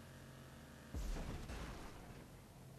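A car lands with a heavy thud.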